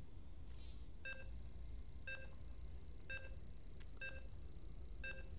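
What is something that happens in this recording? A short electronic beep sounds once each second, counting down.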